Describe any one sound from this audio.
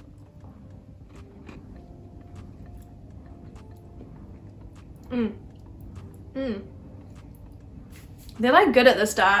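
A young woman chews a crunchy cookie close to a microphone.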